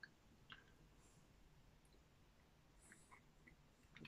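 A man crunches a snack while chewing close by.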